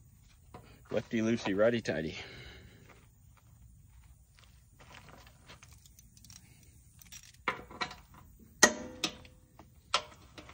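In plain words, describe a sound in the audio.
A wrench clicks and clanks against a metal frame.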